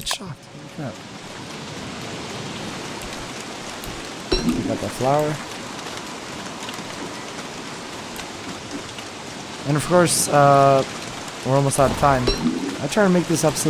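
Steady rain patters down.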